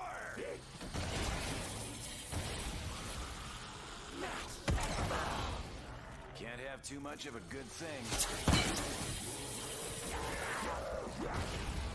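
Monsters growl and snarl.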